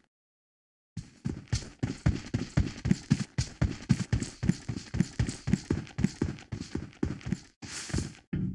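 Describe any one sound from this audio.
Footsteps thud quickly on a hard surface.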